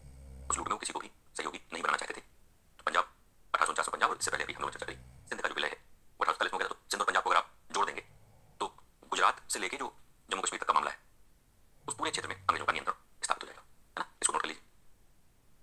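A man lectures with animation through a phone's small speaker.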